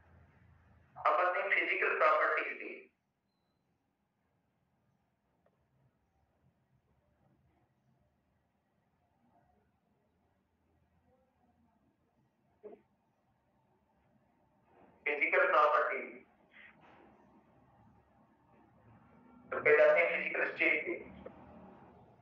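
A man speaks through a headset microphone in short bursts, explaining calmly.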